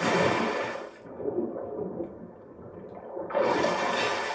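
Water sounds go muffled and dull while submerged.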